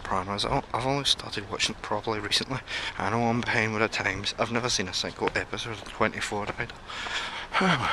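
A young man talks with animation, close to the microphone.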